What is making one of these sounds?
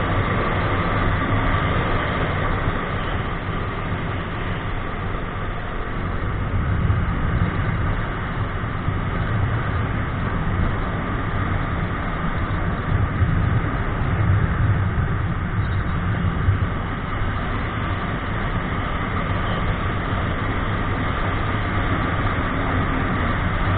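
A motorcycle engine hums steadily as it rides along.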